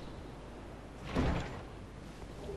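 A heavy wooden chest lid thumps open.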